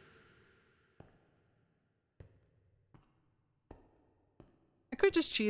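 Footsteps thud softly on stone.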